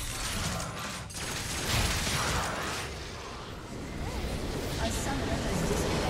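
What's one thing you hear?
Spells and blows clash in a noisy fantasy battle.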